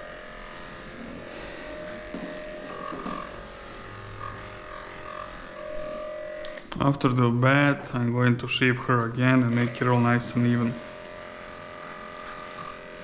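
Electric clippers buzz steadily close by.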